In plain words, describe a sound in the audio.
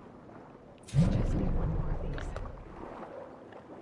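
A deep muffled whoosh bursts out and fades.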